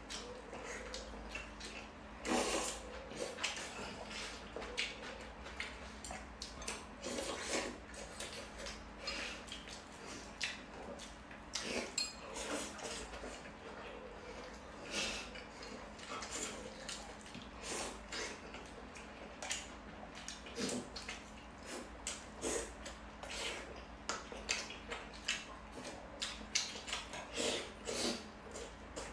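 A young man chews and crunches food close by.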